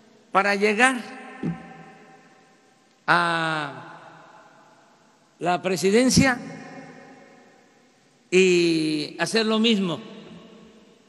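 An elderly man speaks through a microphone in short bursts, echoing in a large hall.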